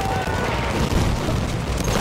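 Gunfire cracks in rapid bursts nearby.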